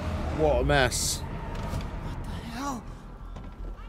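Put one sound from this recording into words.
A man exclaims loudly into a microphone.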